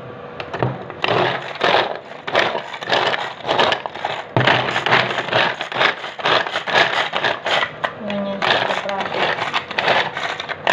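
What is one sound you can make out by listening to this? Cloves clatter inside a plastic container.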